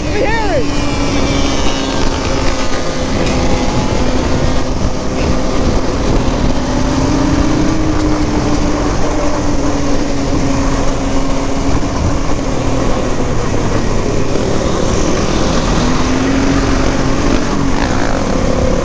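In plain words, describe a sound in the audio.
Motorbike engines rev nearby.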